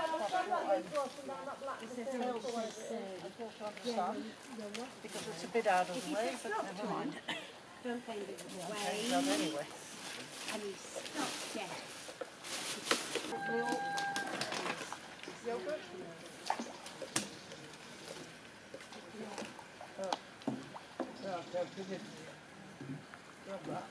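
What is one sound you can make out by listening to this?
Several adults talk with one another outdoors, close by.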